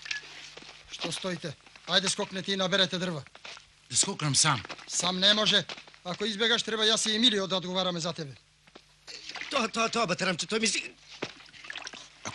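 Men talk with one another outdoors.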